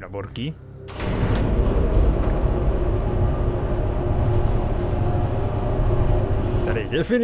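An elevator hums as it moves.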